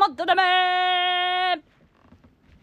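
A young woman sings a long, steady high note up close.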